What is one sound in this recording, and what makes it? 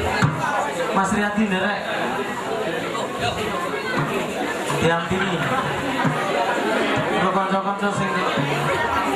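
A crowd of men and boys talk and call out nearby.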